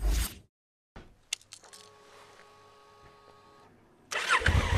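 A motorcycle's electronics give a soft chime and whir as the ignition switches on.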